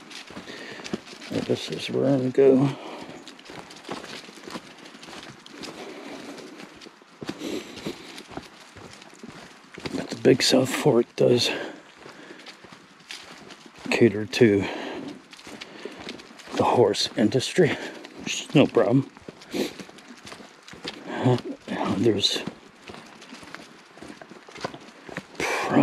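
Footsteps crunch on dry leaves along a path.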